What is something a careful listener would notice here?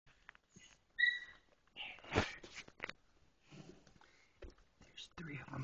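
Newborn puppies squeak and whimper up close.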